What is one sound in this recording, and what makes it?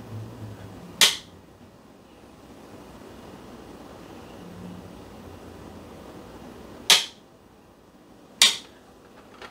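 Plastic parts click sharply a few times.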